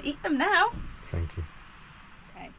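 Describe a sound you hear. A woman speaks cheerfully close by.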